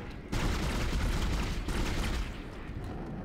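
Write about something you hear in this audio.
A gun fires with a loud, crackling blast.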